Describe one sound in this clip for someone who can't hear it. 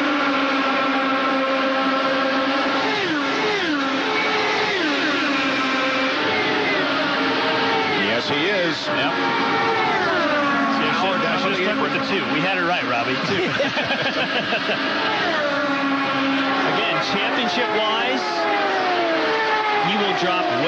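Race car engines whine loudly at high speed and drop in pitch as they pass by.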